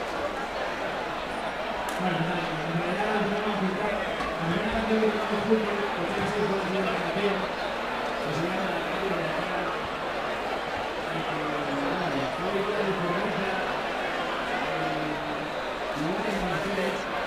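A crowd chatters loudly all around.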